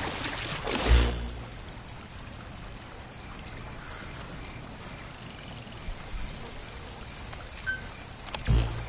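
Short electronic clicks and blips sound.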